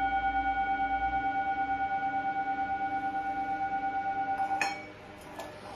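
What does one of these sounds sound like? A metal singing bowl rings with a steady, pulsing hum.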